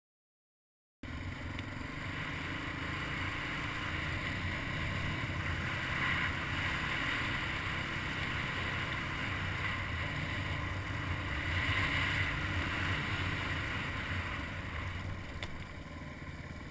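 A quad bike engine roars steadily up close.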